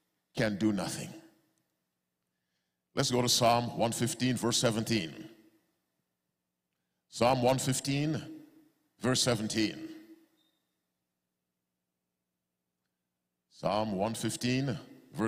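A man preaches into a microphone in slow, emphatic phrases with long pauses.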